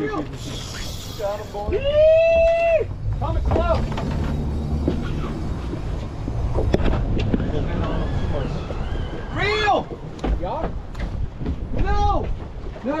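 Men shout excitedly nearby.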